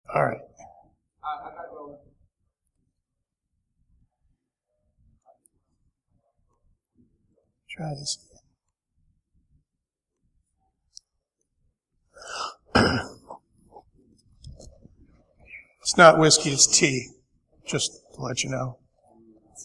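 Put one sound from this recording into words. A man speaks through a microphone to an audience in a large room, pausing often.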